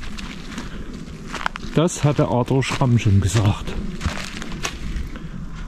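Footsteps crunch through dry fallen leaves.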